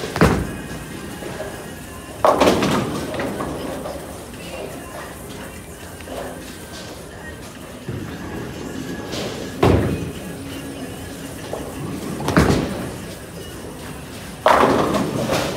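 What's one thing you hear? A bowling ball rumbles down a lane.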